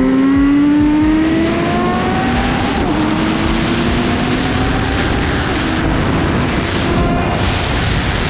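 Wind rushes past.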